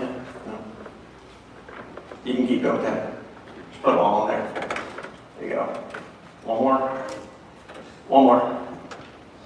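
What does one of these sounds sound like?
A man speaks with animation in a large echoing hall, heard through a microphone.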